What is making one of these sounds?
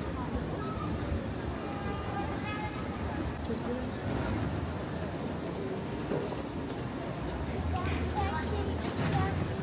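Footsteps tap on wet pavement.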